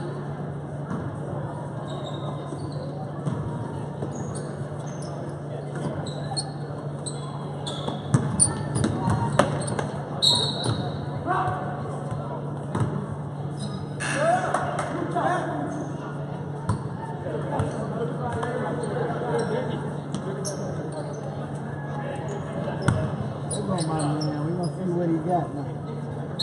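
A crowd of spectators murmurs and cheers.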